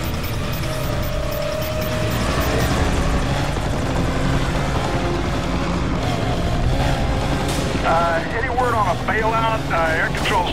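A car engine roars at high revs as the car speeds along a road.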